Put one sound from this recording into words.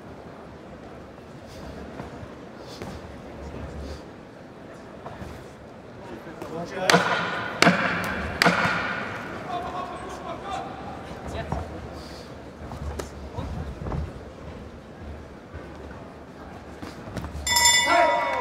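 Gloved punches thud against a boxer's body.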